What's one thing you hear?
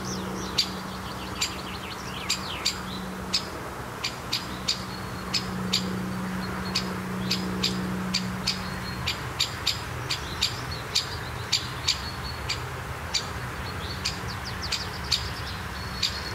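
A woodpecker gives sharp, repeated call notes close by.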